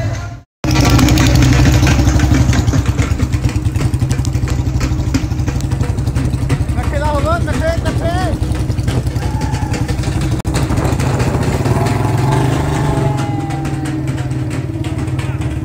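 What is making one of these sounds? Motorcycle engines rumble steadily as they ride along.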